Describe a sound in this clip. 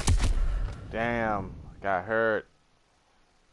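A young man speaks with animation into a microphone.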